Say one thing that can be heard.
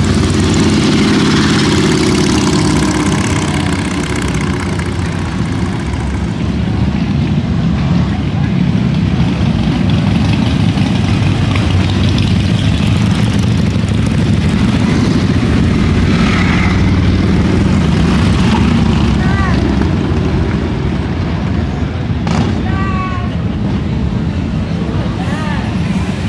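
Motorcycle engines rumble loudly as bikes ride past one after another.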